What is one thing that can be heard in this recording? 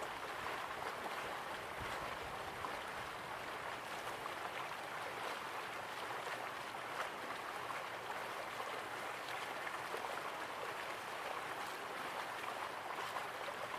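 Water rushes steadily over rocks.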